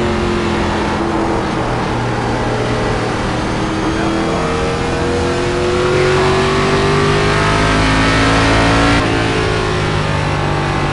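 A race car engine roars steadily, rising in pitch as it speeds up.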